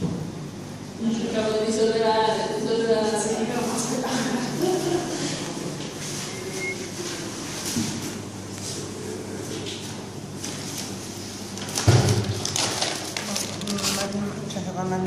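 A woman talks and laughs nearby.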